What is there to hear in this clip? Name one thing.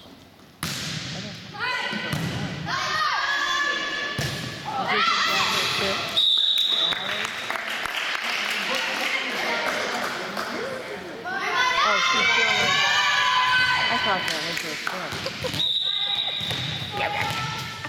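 Young girls shout and cheer in a large echoing hall.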